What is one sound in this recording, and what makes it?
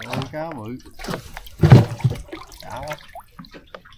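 A fish caught in a net splashes in the water.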